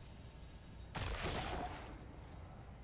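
A magic portal whooshes loudly.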